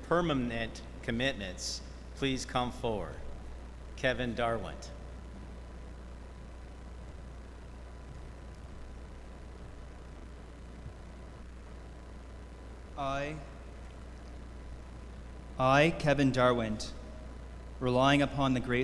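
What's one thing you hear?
A man speaks slowly through a microphone in a large echoing hall.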